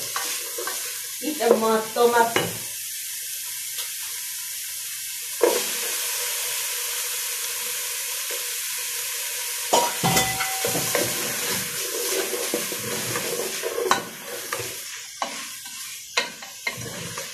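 A wooden spoon scrapes and stirs food in a metal pot.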